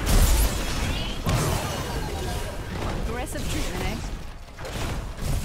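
Game spell effects whoosh and crackle during a battle.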